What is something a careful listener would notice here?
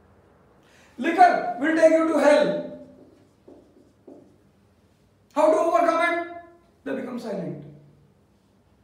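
A man speaks calmly and clearly close to a microphone, in short phrases with pauses.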